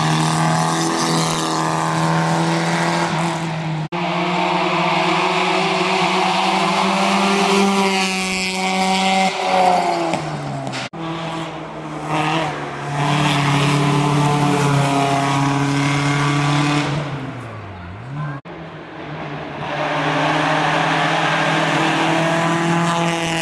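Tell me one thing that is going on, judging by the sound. Rally car engines roar loudly as the cars race past, revving hard and dropping in pitch between gear changes.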